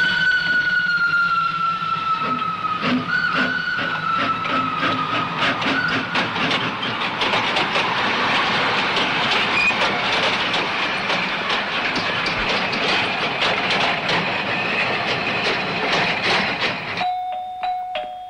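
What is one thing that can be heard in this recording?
A steam train hisses and rumbles loudly.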